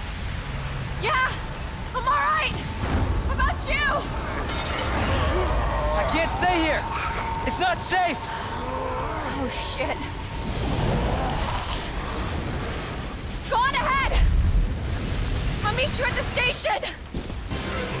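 A young woman speaks with urgency, close by.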